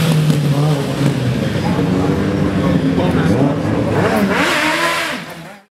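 A motorcycle engine hums and revs nearby.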